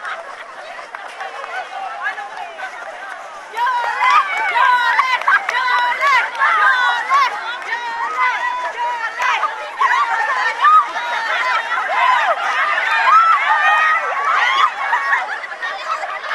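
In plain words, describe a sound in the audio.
A group of young women cheer and laugh loudly outdoors.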